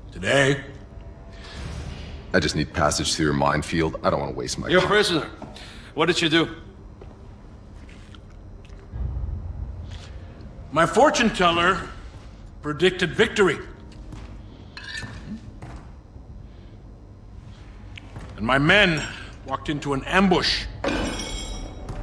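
A man speaks in a low, gruff voice, close by.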